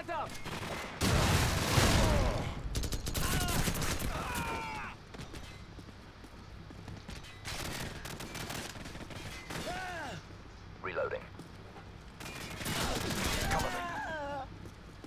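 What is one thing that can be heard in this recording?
A rifle fires bursts of shots.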